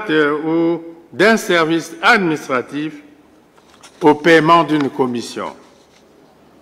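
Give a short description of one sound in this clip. A man speaks formally and slowly into a microphone in a large hall.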